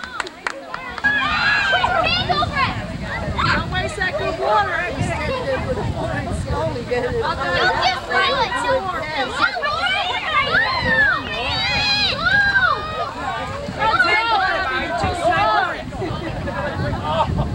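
Young children chatter and call out nearby, outdoors.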